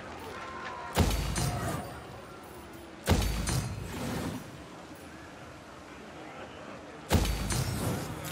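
Soft whooshing thuds sound as game menus open and close.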